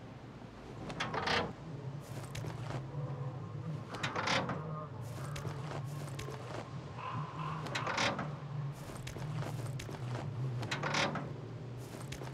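Wooden cabinet doors swing open with a soft creak and thud.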